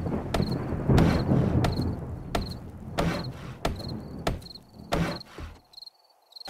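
A wooden club thumps repeatedly against wooden blocks.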